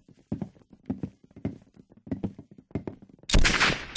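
A submachine gun fires a short burst.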